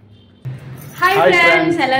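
A young man and a young woman shout a greeting together, close by.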